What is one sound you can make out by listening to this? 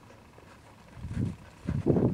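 Sheep hooves patter across dry dirt.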